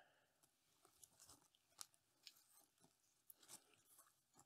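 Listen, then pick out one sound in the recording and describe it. A plastic bag crinkles and rustles softly.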